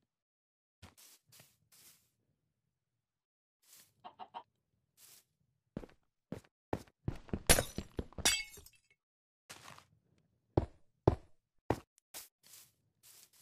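Footsteps crunch softly on grass and stone.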